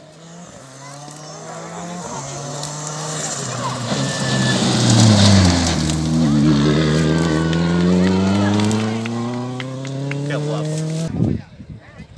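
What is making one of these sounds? A rally car engine roars closer and speeds past nearby, its pitch dropping.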